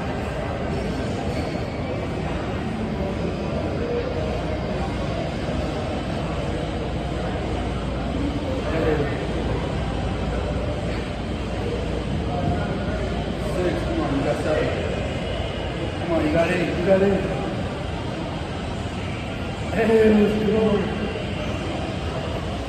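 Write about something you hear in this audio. A man exhales hard nearby.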